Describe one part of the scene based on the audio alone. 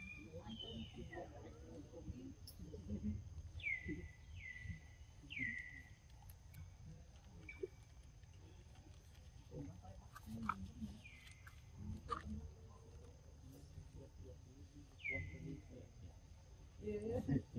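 A monkey chews and slurps juicy fruit up close.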